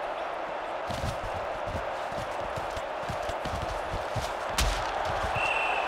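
Football players collide with heavy thuds.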